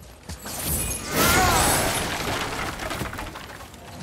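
Wooden planks smash and splinter.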